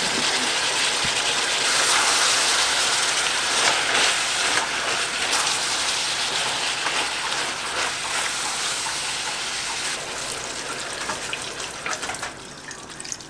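Food sizzles loudly in a hot pan and slowly quietens.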